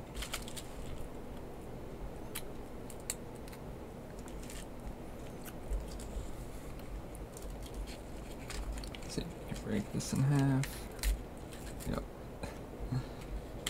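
Crackers clack softly as they are stacked.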